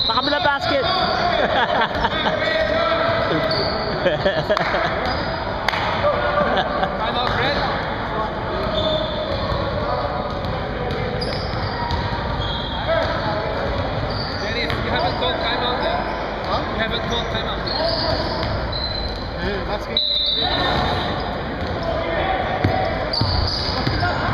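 Sneakers squeak on a wooden court, echoing in a large gym.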